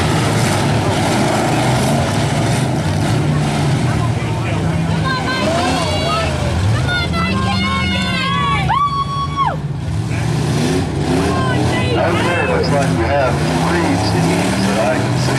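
Car engines rumble and rev loudly outdoors.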